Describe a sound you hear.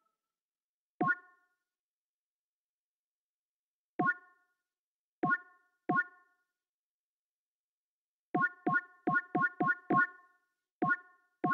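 Short pitched menu blips sound each time a selection changes.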